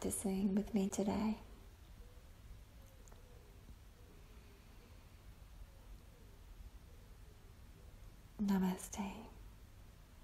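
A woman speaks softly and calmly, close by.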